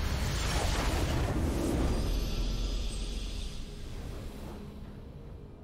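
A bright, triumphant game fanfare bursts out and fades away.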